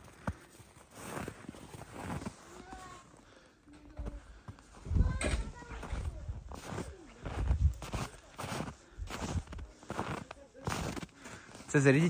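Paws crunch and scuffle through deep snow.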